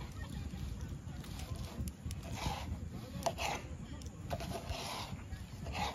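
A knife slices through a tomato on a wooden board.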